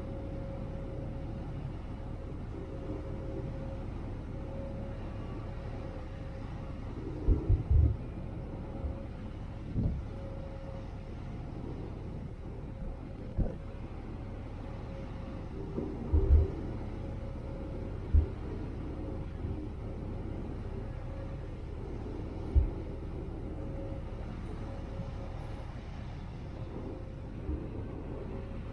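A ferry's engine hums steadily.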